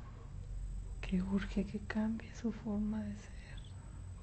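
A woman speaks briefly close by.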